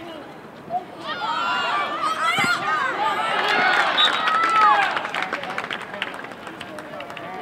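A crowd on the sideline cheers loudly and then fades.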